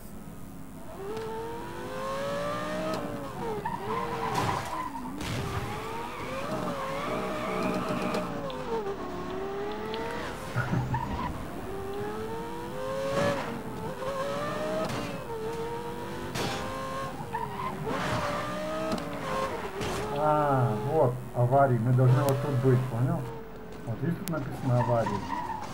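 A sports car engine roars and revs up and down as it races.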